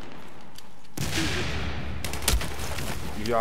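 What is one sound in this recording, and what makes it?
A rifle fires a few sharp shots.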